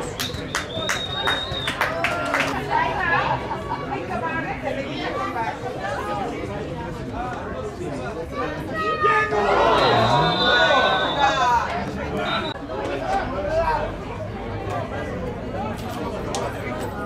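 A crowd of spectators talks and shouts outdoors.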